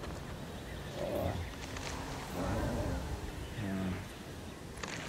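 Large animals grunt and bellow nearby.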